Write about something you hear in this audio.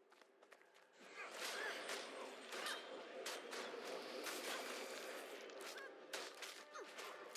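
Blades clash and strike in a fast fight.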